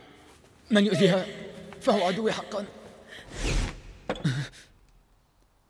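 A woman speaks urgently, raising her voice.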